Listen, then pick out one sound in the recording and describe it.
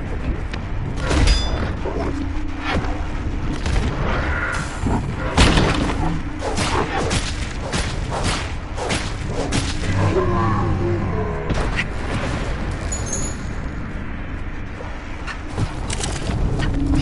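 Blades clash and slash in quick, sharp hits.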